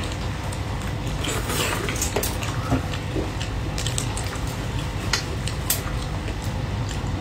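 A young woman slurps and chews food loudly, close to a microphone.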